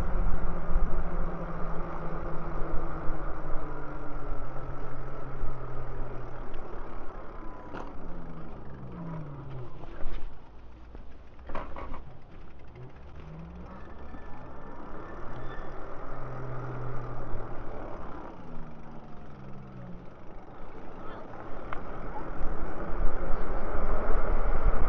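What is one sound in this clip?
Bicycle tyres roll and hum on pavement.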